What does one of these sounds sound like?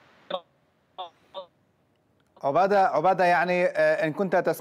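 A man speaks calmly and clearly into a studio microphone.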